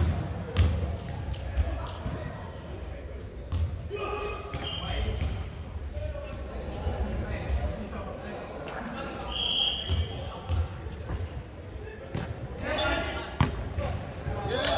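Players call out and talk across an echoing gym.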